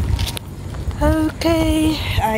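A young woman makes a long, high-pitched vocal sound close by.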